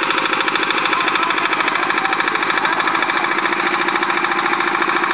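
A small engine runs with a fast, steady chugging close by.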